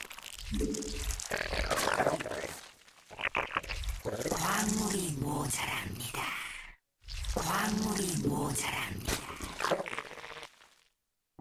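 A man speaks quickly and with animation through a microphone.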